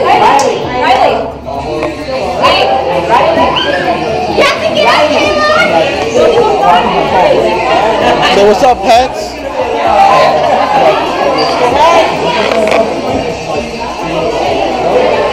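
A crowd of adults and children chatter and talk all around, close by, in a lively room.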